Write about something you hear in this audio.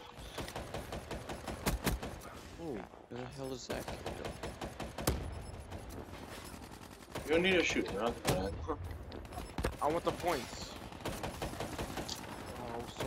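Gunfire from a game rattles in quick bursts.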